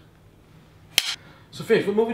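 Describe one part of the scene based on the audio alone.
A clapperboard snaps shut with a sharp clack.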